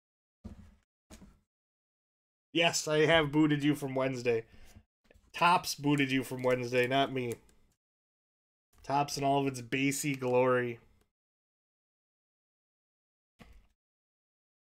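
A card wrapper crinkles in someone's hands.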